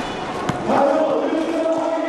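A volleyball bounces on the floor.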